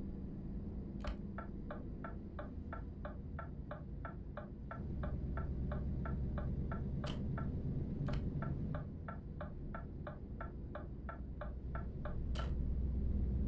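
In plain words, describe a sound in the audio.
A turn signal ticks quickly and evenly.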